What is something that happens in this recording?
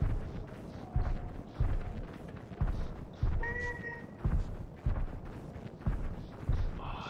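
Heavy footsteps of a large beast thud slowly and repeatedly.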